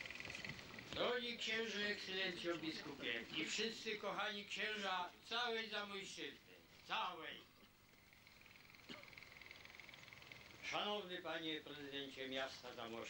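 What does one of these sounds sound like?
An elderly man reads out a speech through a microphone and loudspeakers, outdoors.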